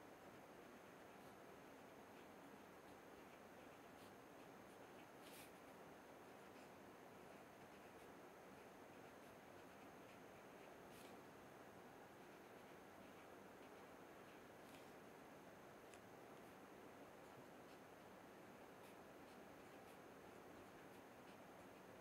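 A marker squeaks and scratches on paper.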